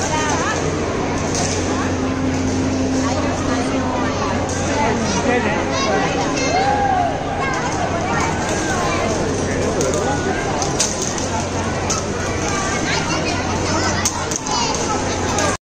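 Many young children chatter and call out nearby in a lively crowd.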